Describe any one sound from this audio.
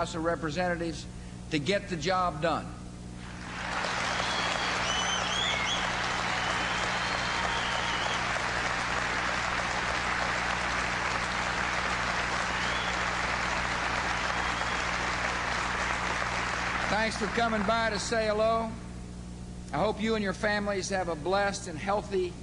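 A man gives a speech through a microphone over loudspeakers in a large hall.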